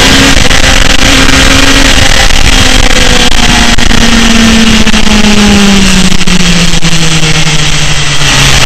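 A motorcycle engine roars loudly, its pitch slowly falling.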